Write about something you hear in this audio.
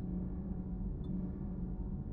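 A short electronic menu blip sounds once.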